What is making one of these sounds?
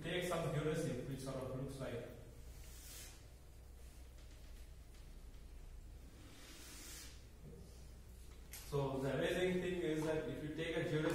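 A man lectures aloud in an echoing room.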